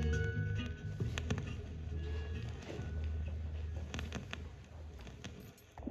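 Music plays from a spinning vinyl record.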